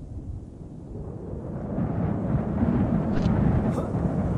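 Wind rushes loudly past during a fast fall.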